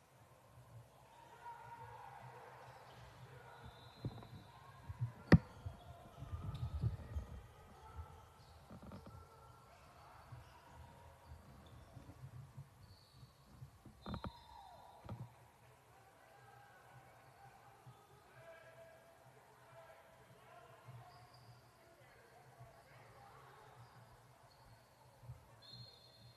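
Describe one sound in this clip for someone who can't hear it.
Young women call out to each other in a large echoing gym.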